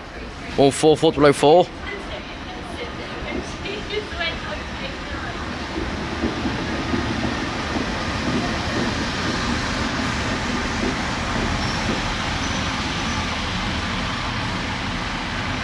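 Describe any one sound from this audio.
A train rumbles closer and rolls past on the tracks.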